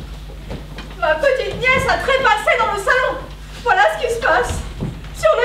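Women speak excitedly in a large hall.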